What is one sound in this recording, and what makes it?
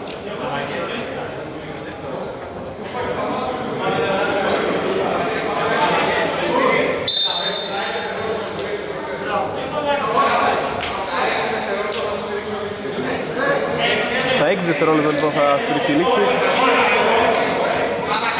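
Several men talk and call out across a large echoing hall.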